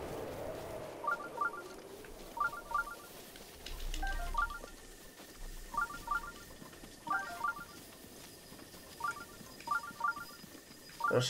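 Footsteps swish through grass at a steady pace.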